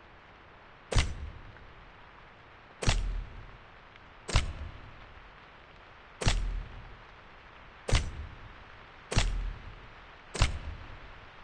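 Short sharp clicks sound one after another from a game menu.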